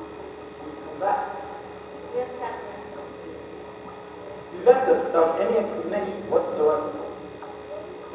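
A man speaks on a stage, heard from the audience in a large hall.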